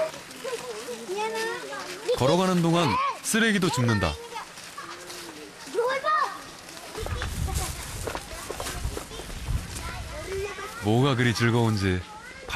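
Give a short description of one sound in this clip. Footsteps shuffle along a dirt path.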